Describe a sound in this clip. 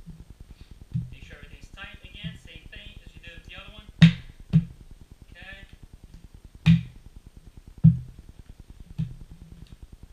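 Plastic pipes knock and clack together as they are fitted.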